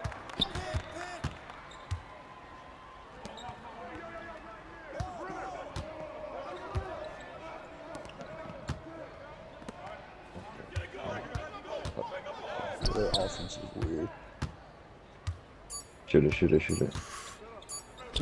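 Sneakers squeak on a basketball court.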